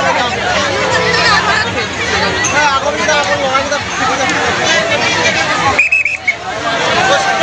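A large crowd of men and women chatters loudly all around, close by.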